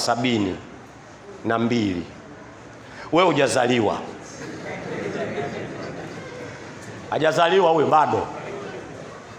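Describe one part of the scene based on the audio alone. An elderly man chants in short, loud, drawn-out phrases through a microphone, with quiet pauses between them.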